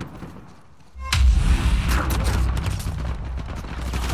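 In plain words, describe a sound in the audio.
An explosion booms and debris clatters.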